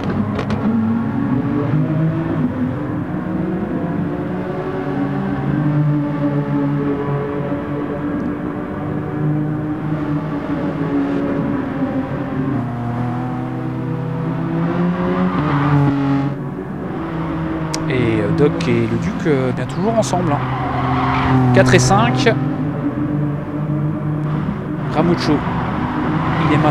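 Racing car engines roar and shift gears steadily throughout.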